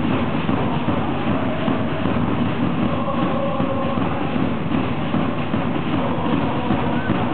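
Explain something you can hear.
A crowd of fans sings and chants loudly in a large echoing hall.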